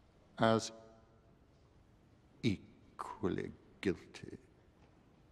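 A man speaks slowly in a low, deep voice.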